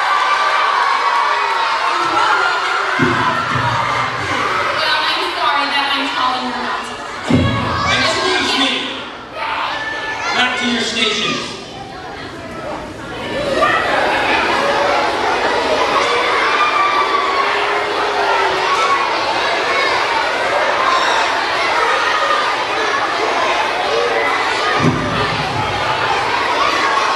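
A crowd of children chatters nearby.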